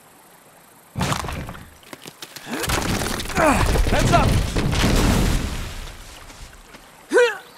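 Rocks crash down with a deep rumble.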